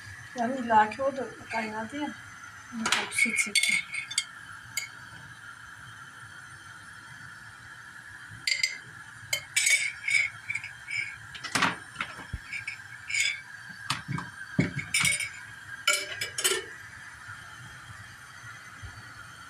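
A wooden spoon stirs and scrapes in a metal pot.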